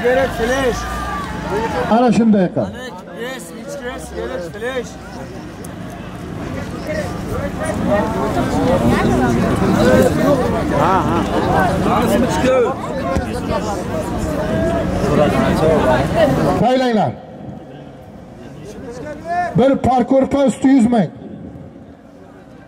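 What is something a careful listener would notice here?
A large crowd of men shouts and calls out outdoors.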